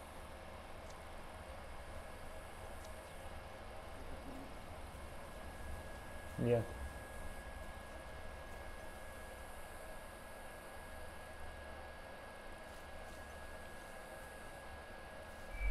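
Footsteps shuffle softly on grass.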